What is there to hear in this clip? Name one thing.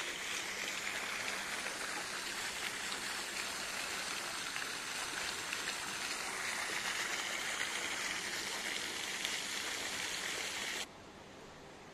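A fountain splashes steadily into a pond.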